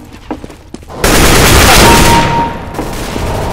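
An assault rifle fires a burst of shots.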